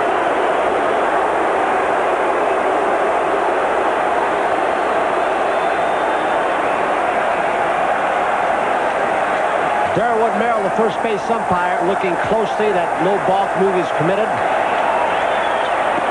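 A large crowd cheers and roars loudly in a big stadium.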